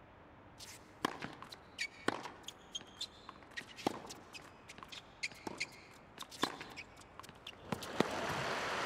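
Tennis rackets strike a ball back and forth in a quick rally.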